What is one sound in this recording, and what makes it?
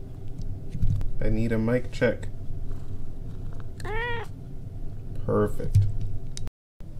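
A cat meows loudly, close by.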